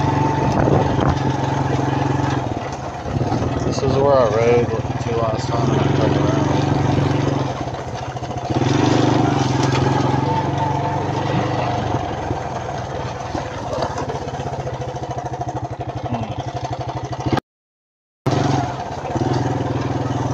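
A lawn mower engine drones steadily close by.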